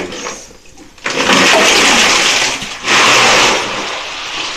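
Ice and water splash loudly as a bucket is dumped into a bathtub.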